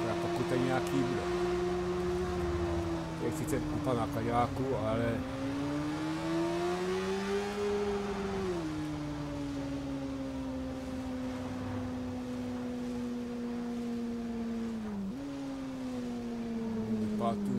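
A motorcycle engine hums steadily, its pitch rising and falling as it shifts gears.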